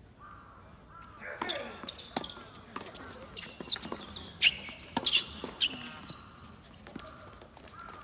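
Tennis shoes squeak on a hard court.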